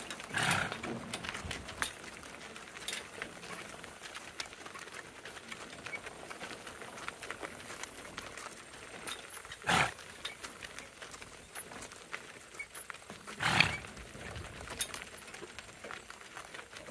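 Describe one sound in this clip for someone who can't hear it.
A cart's wheels crunch over gravel.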